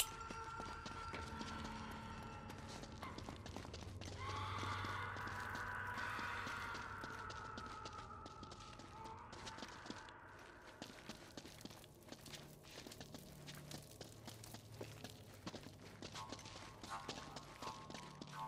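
Footsteps run on a stone floor.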